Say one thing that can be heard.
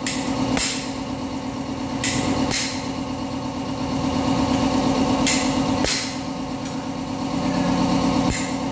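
A hammer strikes metal with sharp clanks.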